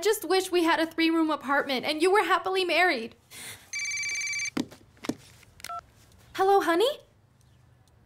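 A young woman speaks tearfully, close by.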